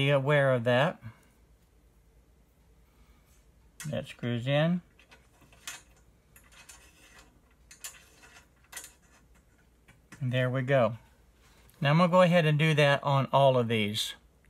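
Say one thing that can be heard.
Small metal parts click and tap against an aluminium frame.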